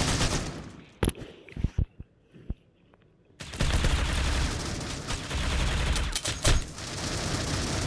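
Rapid gunshots crack at close range.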